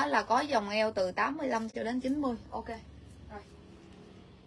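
A woman talks with animation close by.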